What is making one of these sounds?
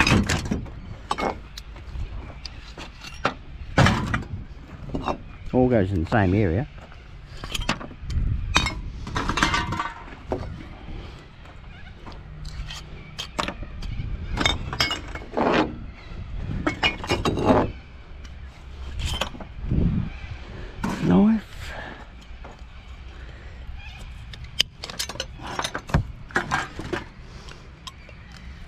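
Glass bottles clink and clatter as they are handled and dropped into a pile.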